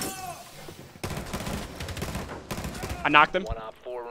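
A rifle fires a burst of automatic shots.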